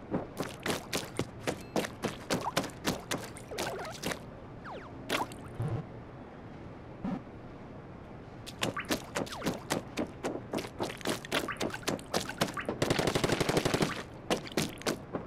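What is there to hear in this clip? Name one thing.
Rapid wet squirting shots fire in bursts, with splashy splats.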